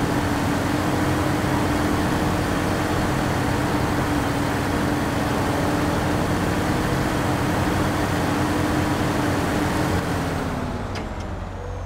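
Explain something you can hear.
A truck engine rumbles steadily as the truck drives slowly.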